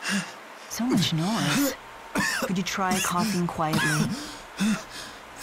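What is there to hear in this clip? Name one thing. A young woman speaks firmly, close by.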